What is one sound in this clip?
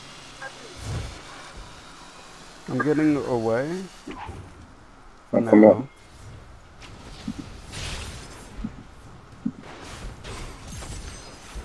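Game spells blast and crackle during a fight.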